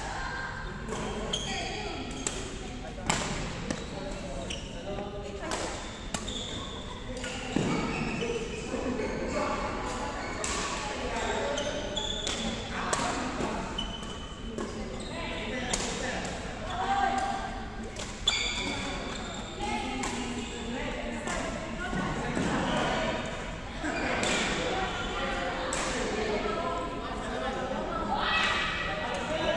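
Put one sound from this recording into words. Shuttlecocks pop off badminton rackets in sharp hits.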